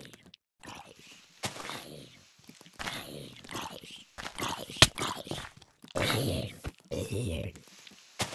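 Hay bales crunch as they are broken apart.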